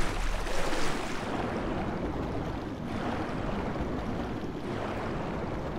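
A muffled underwater rumble swells and churns.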